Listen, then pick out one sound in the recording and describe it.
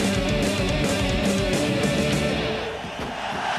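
Rock music plays loudly.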